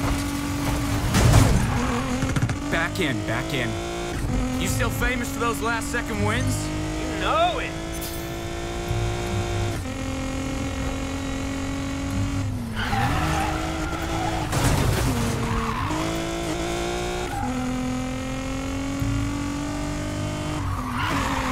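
A car engine roars loudly, rising and falling in pitch as the gears shift.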